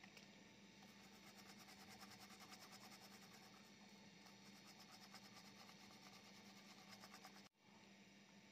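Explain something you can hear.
A small brush scrubs across a circuit board.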